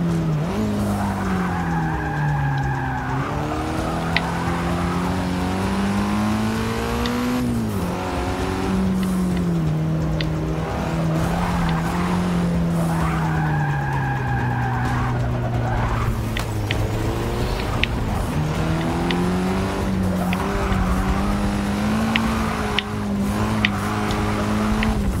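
Tyres squeal loudly in skids through bends.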